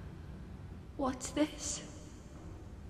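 A young woman speaks in a hushed voice.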